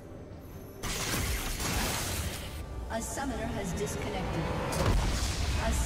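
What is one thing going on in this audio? Game spell effects crackle and burst loudly.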